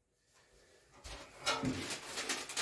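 Newspaper rustles and crinkles.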